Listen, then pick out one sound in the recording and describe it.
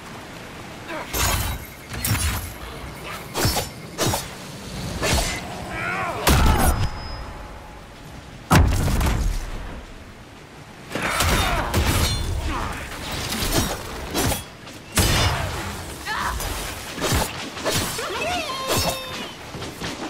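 Swords clash and magic blasts crackle in a fight.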